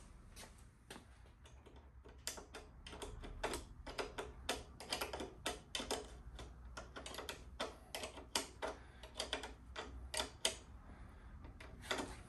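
Metal tools click and clatter against a motorcycle wheel.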